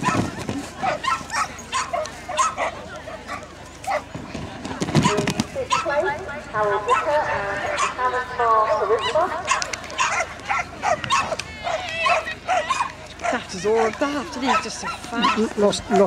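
A woman calls out commands to a dog outdoors.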